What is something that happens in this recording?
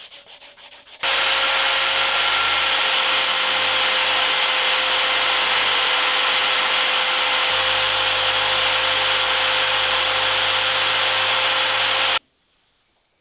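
A polishing wheel whirs loudly and steadily as metal is pressed against it.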